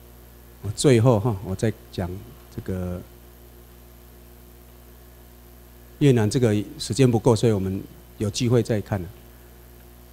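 A man speaks calmly through a microphone, in short bursts with pauses.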